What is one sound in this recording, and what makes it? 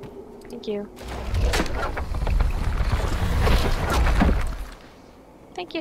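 Magic crackles and whooshes loudly.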